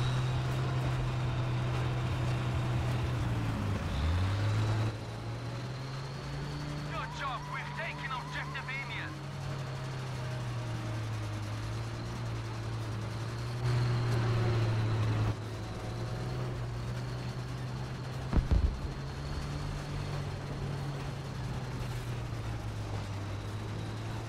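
A tank engine rumbles steadily with clanking tracks.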